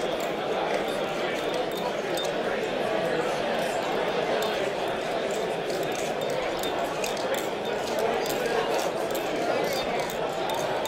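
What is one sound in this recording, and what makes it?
A metal knife handle clicks and clacks as it is flipped open and shut.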